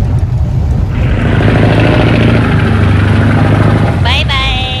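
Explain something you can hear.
A boat engine rumbles steadily nearby.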